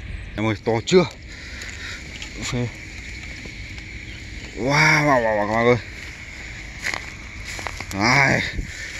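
A fish flaps and thumps against grass inside a net.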